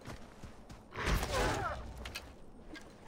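A bowstring snaps as an arrow is loosed.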